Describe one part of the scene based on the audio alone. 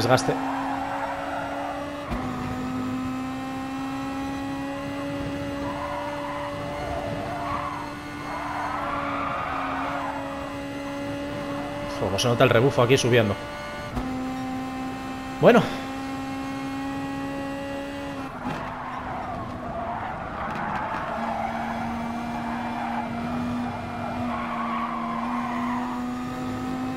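A racing car engine hums steadily, shifting gears now and then.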